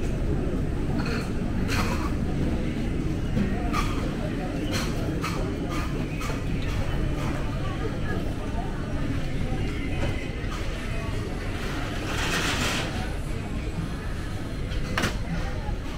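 Diners talk in a low murmur.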